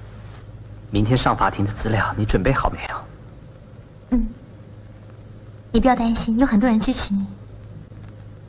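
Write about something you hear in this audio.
A young woman speaks tensely into a phone.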